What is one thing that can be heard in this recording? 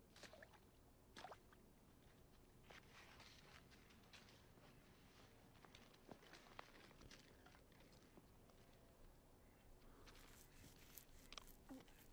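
Thin ice cracks and splashes in water.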